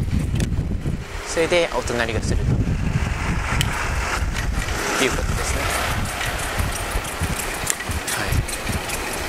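Wind rumbles and buffets against the microphone while cycling outdoors.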